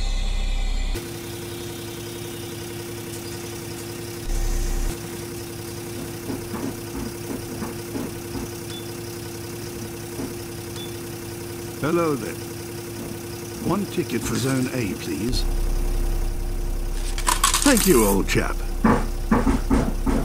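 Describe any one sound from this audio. A bus engine idles with a steady hum.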